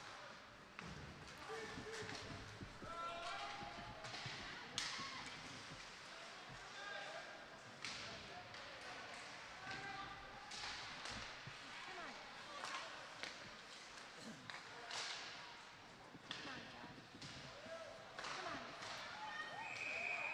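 Hockey sticks and pucks clack against the ice and boards.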